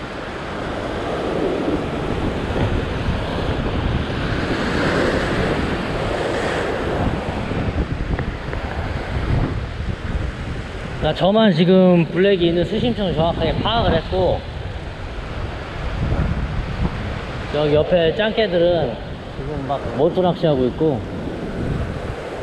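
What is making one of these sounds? Waves crash and surge against rocks close by.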